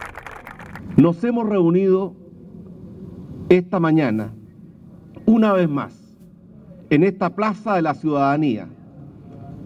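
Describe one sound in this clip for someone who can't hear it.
A man speaks calmly and formally into a microphone over loudspeakers.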